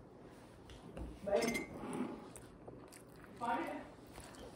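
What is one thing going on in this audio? An older woman speaks quietly close by.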